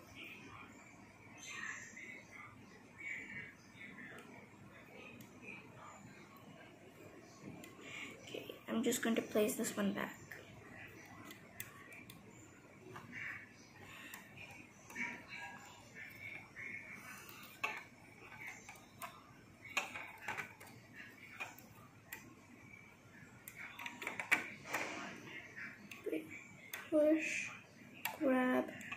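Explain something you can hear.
A small plastic hook clicks and scrapes softly against a plastic loom.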